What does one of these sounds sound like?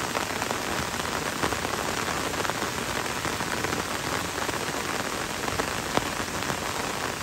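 Rain falls steadily on leaves and a wet road in a forest.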